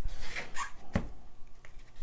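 A canvas board is set down on a table with a dull knock.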